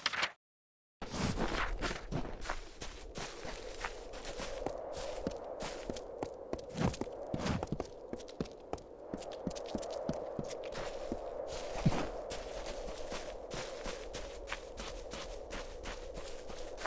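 Footsteps patter quickly over grass and ground.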